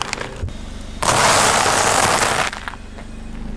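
Crisp flakes crunch under a car tyre.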